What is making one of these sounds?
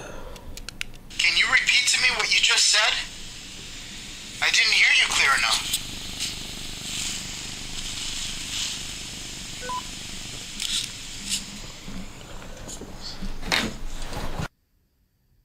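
A handheld voice recorder plays back steady hissing static.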